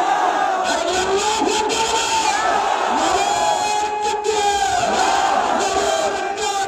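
A man chants loudly and with animation into a microphone, heard through loudspeakers.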